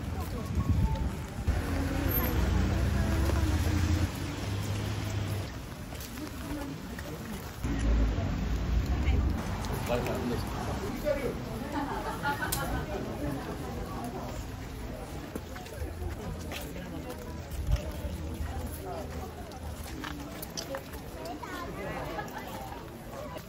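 A crowd of people chatters softly outdoors.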